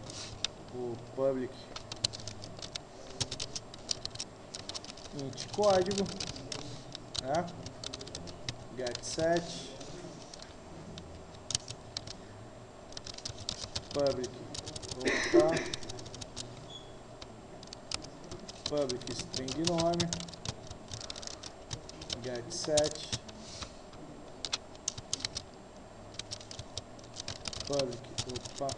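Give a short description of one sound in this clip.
Keys clatter on a keyboard in quick bursts of typing.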